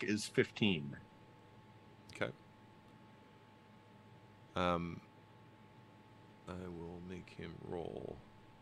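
A man speaks in short bursts over an online call, with pauses between.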